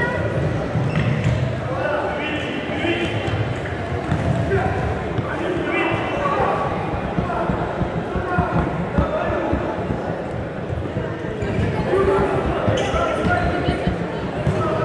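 Spectators talk and shout in a large echoing hall.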